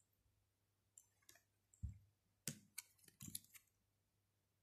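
Cards slap and slide onto a soft surface.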